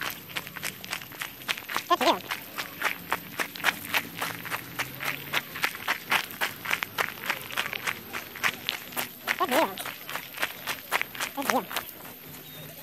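Footsteps crunch on gravel.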